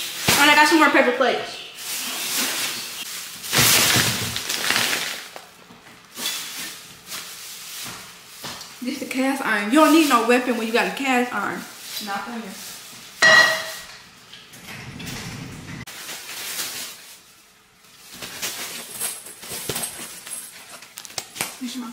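Paper bags rustle and crinkle loudly.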